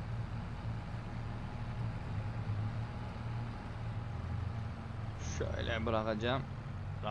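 A truck engine rumbles steadily at a low pitch.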